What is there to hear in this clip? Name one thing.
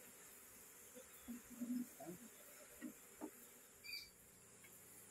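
A wooden frame knocks and scrapes against a wooden hive box.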